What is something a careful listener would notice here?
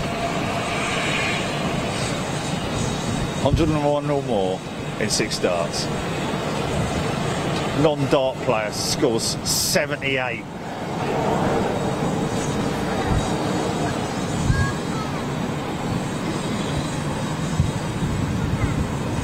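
A jet airliner's engines rumble steadily as it taxis past.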